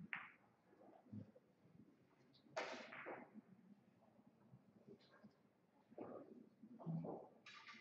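Billiard balls clack together as they are racked.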